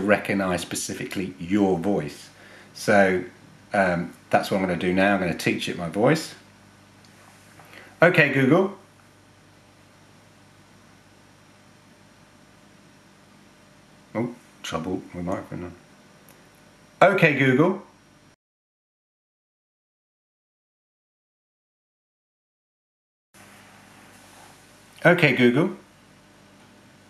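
A man speaks a command to a smart speaker close by.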